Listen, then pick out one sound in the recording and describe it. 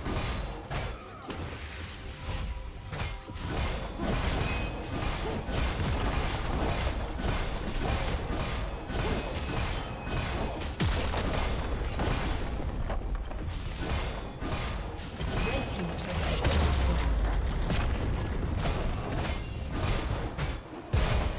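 Magic blasts and weapon blows crackle and clash in a fast fight.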